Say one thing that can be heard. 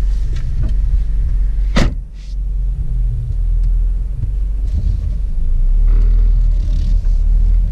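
A car engine rumbles low and steady from inside the car.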